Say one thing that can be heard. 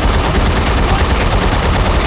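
An explosion bursts in the air.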